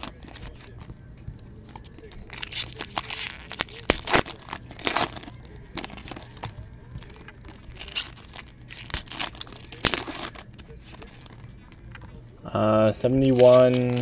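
Trading cards rustle and slap softly onto a pile.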